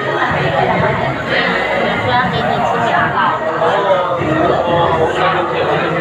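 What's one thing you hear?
Many people talk at once nearby in a busy, noisy room.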